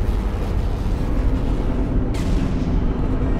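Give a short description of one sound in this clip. A futuristic energy gun fires with a sharp electric zap.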